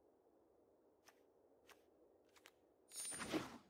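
Short game interface clicks sound.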